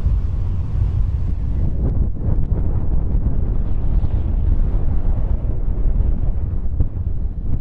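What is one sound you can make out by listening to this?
Wind rumbles against the car.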